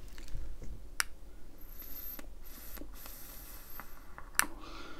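A small device clicks as a hand handles it.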